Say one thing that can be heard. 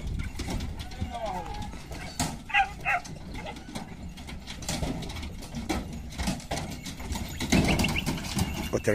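Several dogs yelp and bark in short bursts.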